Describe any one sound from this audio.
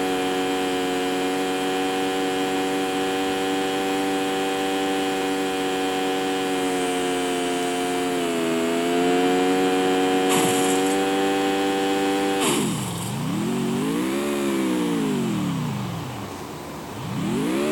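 A car engine hums steadily, then revs up and down.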